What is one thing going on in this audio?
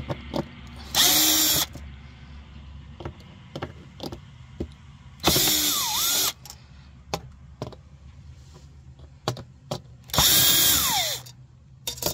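A cordless drill whirs in short bursts, driving screws.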